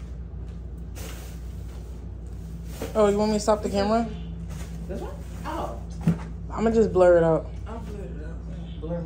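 A plastic bag rustles as it is handled.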